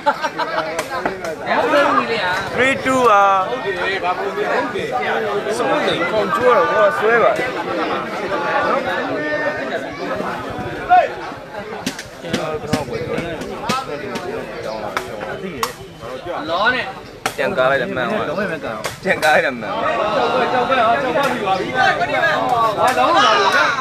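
A ball is kicked with sharp thumps.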